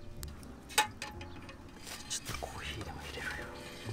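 A metal kettle clinks as it is set down on a stove.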